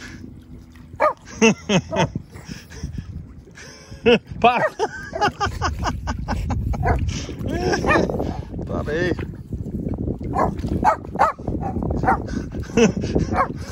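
A dog barks excitedly close by.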